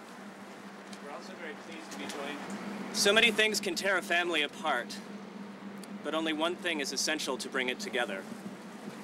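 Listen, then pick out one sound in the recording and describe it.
A man reads aloud with emphasis, close by.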